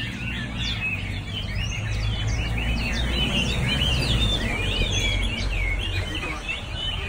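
A bus rumbles past nearby.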